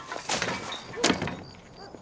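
A bin lid bangs.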